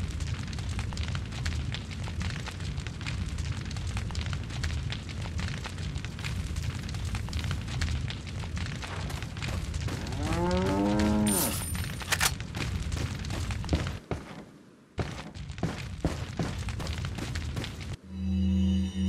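Footsteps crunch on wet ground.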